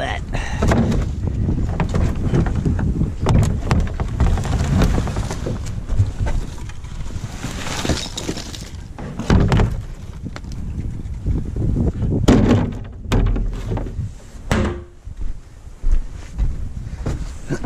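A plastic wheelie bin lid bangs and thuds.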